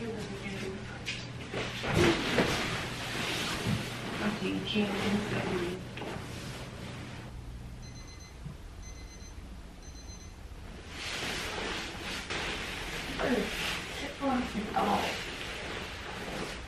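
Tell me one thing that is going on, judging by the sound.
Bedding rustles and thumps as a person climbs onto a bed.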